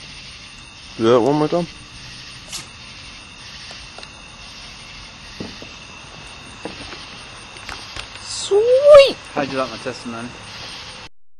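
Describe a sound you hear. A young man speaks briefly and casually, close by.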